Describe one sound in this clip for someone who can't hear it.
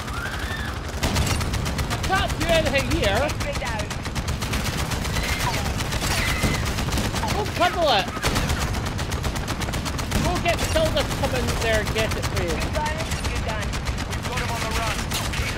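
A helicopter cannon fires rapid bursts.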